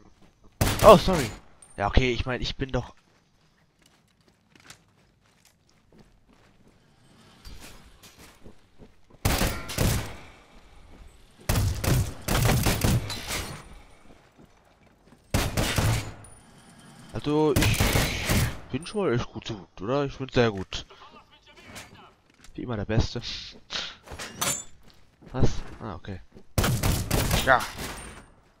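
Rapid gunfire rings out in loud bursts.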